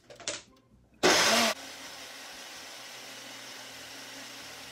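A blender whirs loudly, then runs on with a steady hum.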